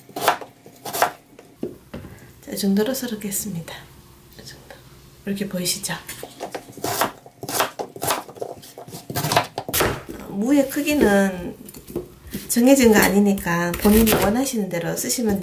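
A knife chops through firm vegetables on a cutting board with sharp, repeated knocks.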